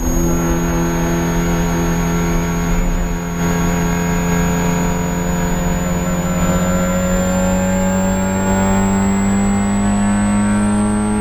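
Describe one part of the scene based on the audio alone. A four-cylinder race car engine drones at high revs inside the cabin, climbing steadily in pitch as the car accelerates.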